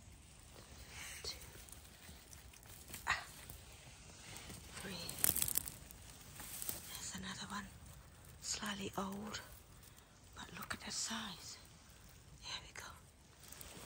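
Dry pine needles rustle and crackle under a hand.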